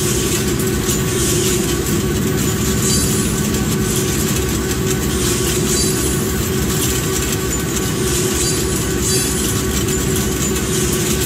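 A freight train's wheels rumble and clatter steadily along the rails close by.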